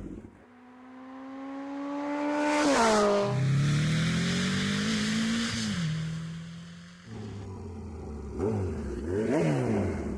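A motorcycle engine revs up and down, its whine rising and falling.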